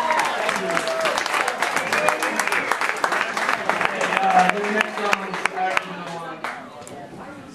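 A crowd chatters.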